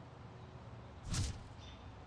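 A heavy thump sounds as a figure lands on the ground.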